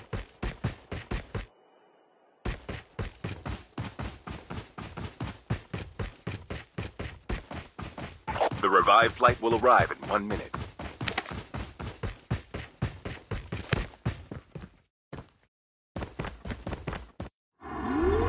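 Footsteps thud quickly on dry ground and rock.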